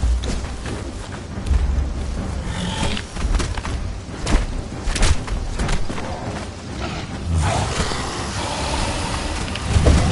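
A large reptile growls and hisses.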